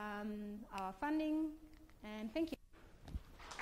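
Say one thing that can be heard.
A woman speaks calmly into a microphone in a large room.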